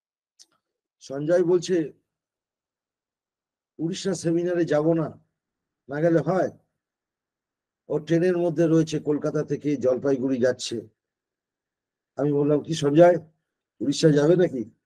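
An elderly man speaks calmly over an online call, with pauses.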